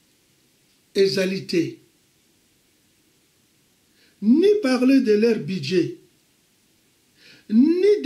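An elderly man speaks calmly and close by, with pauses.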